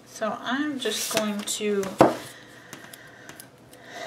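A spiral-bound planner is turned over with a soft thump.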